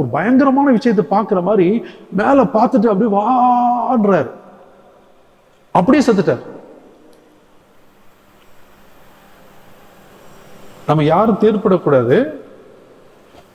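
An elderly man speaks with animation through a microphone, with long pauses, in an echoing hall.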